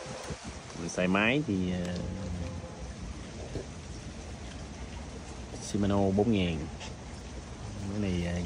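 A fishing reel clicks and rattles as it is handled.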